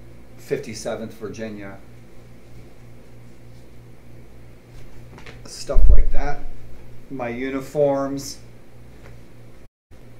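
Cloth rustles as a flag is unfolded and handled.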